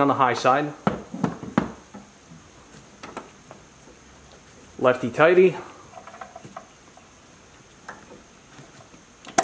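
A cable clamp clicks and knocks as it is handled.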